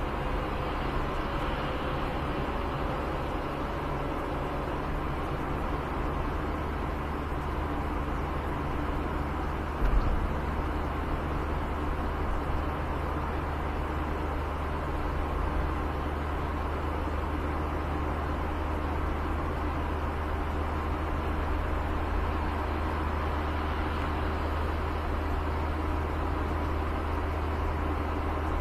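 Tyres roll over a rough road surface.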